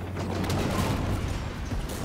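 Energy weapons fire with sharp bursts.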